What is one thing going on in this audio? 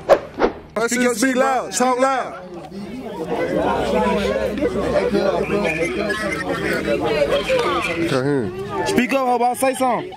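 A group of young people talk and call out excitedly close by.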